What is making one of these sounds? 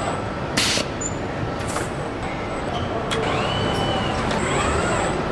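Factory machinery hums steadily.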